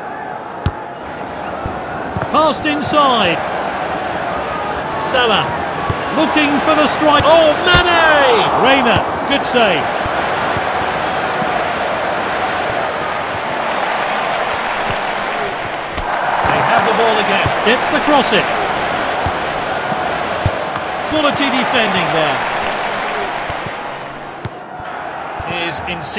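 A stadium crowd roars and whistles steadily.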